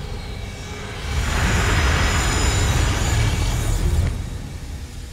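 A deep magical rumble swells and roars steadily.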